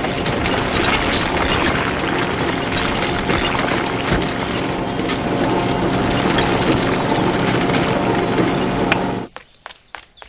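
Small stones rattle along a whirring toy conveyor belt.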